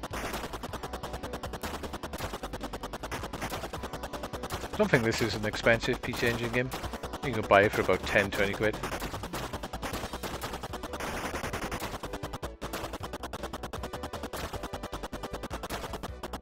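Rapid electronic gunfire rattles steadily.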